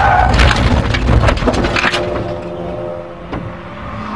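A race car thumps into a tyre wall.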